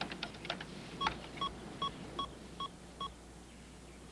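A computer terminal beeps in short, evenly spaced tones.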